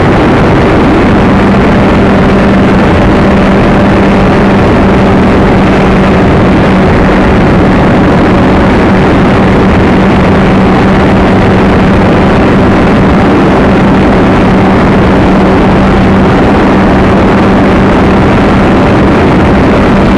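A small model plane's motor drones steadily.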